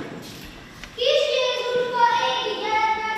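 Children sing together.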